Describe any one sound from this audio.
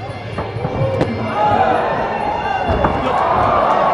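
A fighter crashes against the ring ropes.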